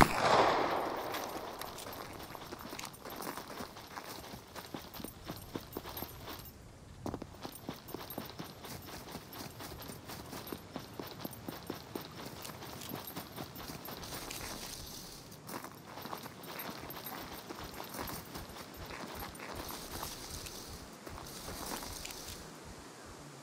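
Footsteps crunch steadily over dry grass and rock.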